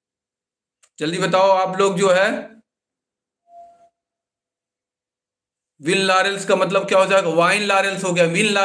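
A young man speaks calmly and close to the microphone, pausing between phrases.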